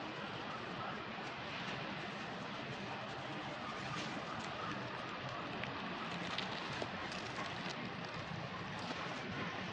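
Dry leaves rustle as monkeys wrestle on the ground.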